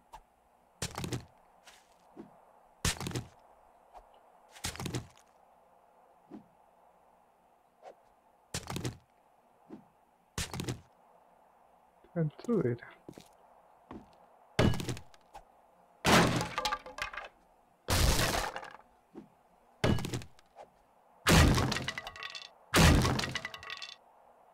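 A hammer knocks on wooden boards.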